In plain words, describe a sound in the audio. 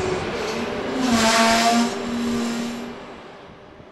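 A train horn blares briefly.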